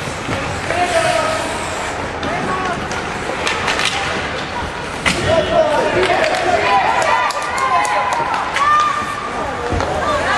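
Hockey sticks clack and skates scrape on the ice.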